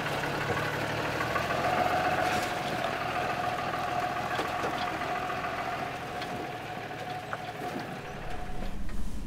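A vehicle engine idles nearby.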